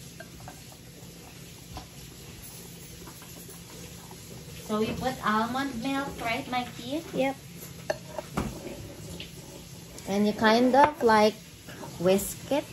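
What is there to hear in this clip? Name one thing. A whisk clinks and scrapes in a bowl.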